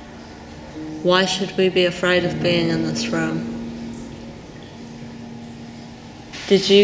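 A young woman speaks close by, slowly and thoughtfully.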